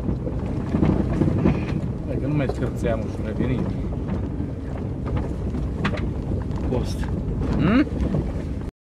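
Loose items rattle and knock inside a car.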